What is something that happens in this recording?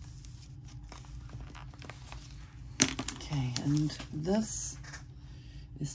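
Stiff paper pages rustle and flap as a book is handled.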